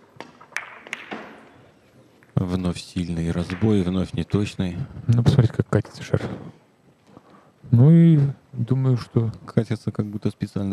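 Billiard balls roll and knock against each other and the cushions.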